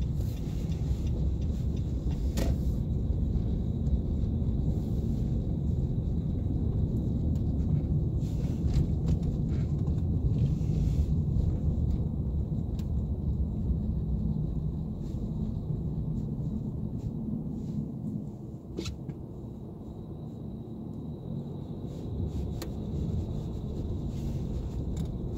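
Tyres rumble and hiss over a snowy road.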